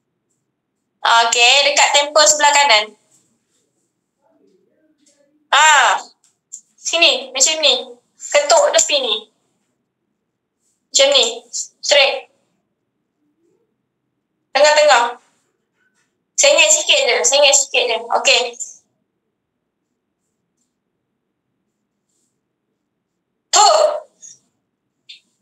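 A young woman speaks calmly in short bursts, close to a microphone on an online call.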